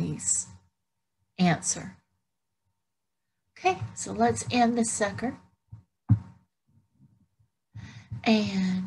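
An older woman speaks calmly over an online call, with pauses.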